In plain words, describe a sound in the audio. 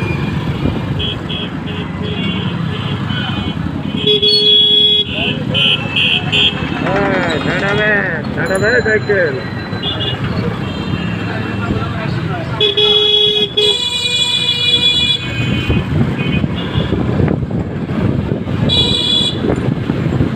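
Bicycle bells ring repeatedly.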